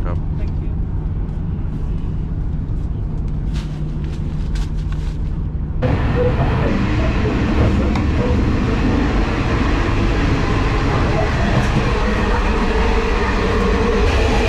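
A train rumbles steadily as it rolls along.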